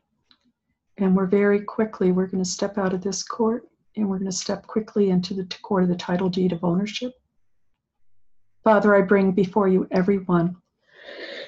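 An older woman speaks calmly and clearly into a nearby microphone, heard as over an online call.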